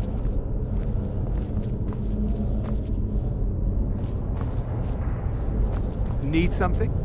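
Footsteps tap on a stone floor in an echoing space.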